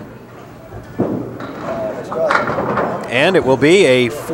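A bowling ball thuds onto a wooden lane and rolls away.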